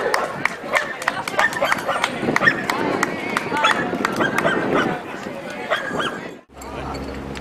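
A crowd chatters outdoors along a parade route.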